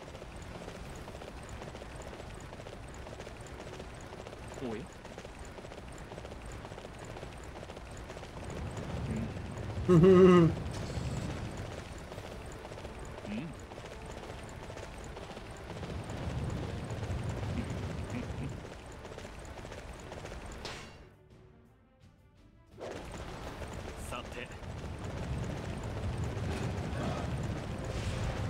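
Horse hooves pound steadily on the ground at a gallop.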